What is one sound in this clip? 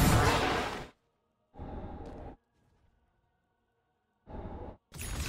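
Magical whooshing effects burst out in short blasts.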